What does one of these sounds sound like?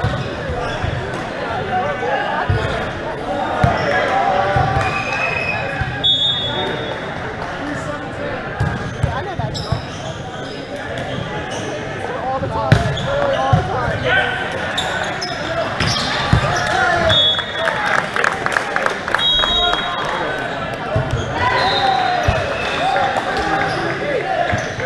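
Players call out and shout during the rally.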